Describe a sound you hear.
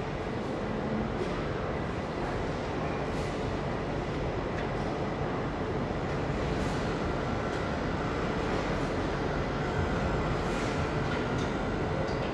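A tank engine idles with a steady low rumble.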